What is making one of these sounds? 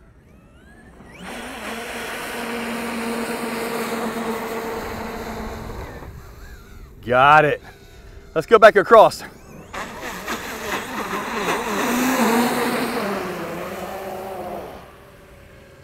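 A toy car's electric motor whines at high speed.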